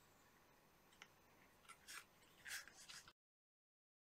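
A small plastic cap clicks and snaps as it is pulled off a handheld device.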